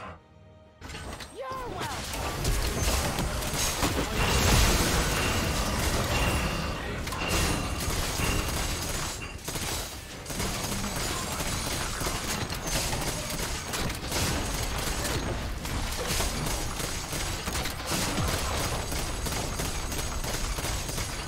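Video game spell blasts and weapon hits clash in a busy fight.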